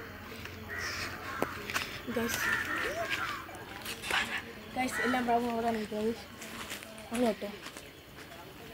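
A boy talks nearby with animation.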